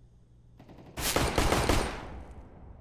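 A pistol fires a few quick shots.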